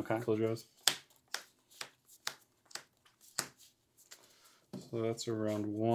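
Cards slap down onto a tabletop one after another.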